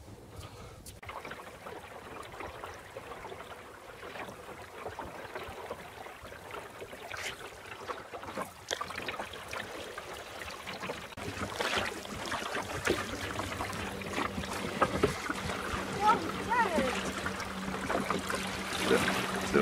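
Water splashes against a small boat's hull.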